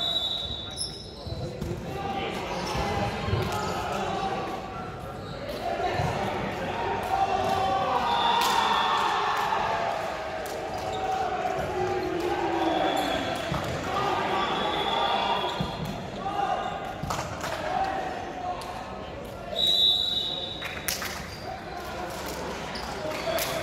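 Young players call out and chatter in a large echoing gym.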